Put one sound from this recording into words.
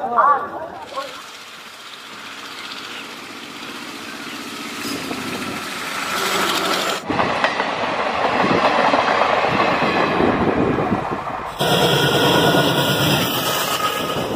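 A diesel train rumbles past on the tracks.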